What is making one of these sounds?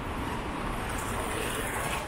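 A scooter motor hums past close by.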